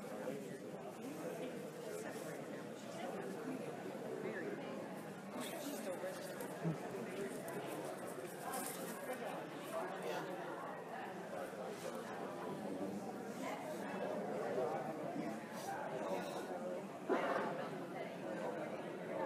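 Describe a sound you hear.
A crowd of adults murmurs in an echoing hall.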